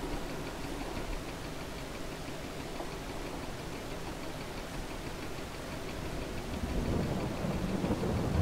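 A heavy loader's diesel engine rumbles steadily and grows louder.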